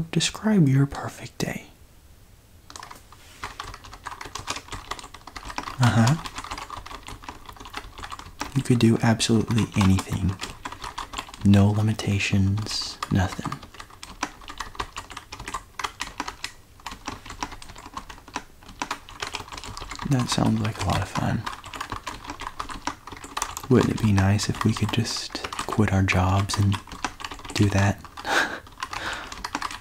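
Fingers type on a mechanical keyboard.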